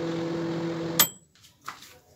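A microwave oven door clicks open.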